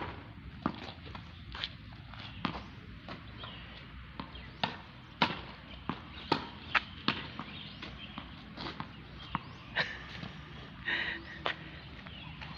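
A tennis ball is struck by a racket and thuds against a wall in a quick, repeated rhythm.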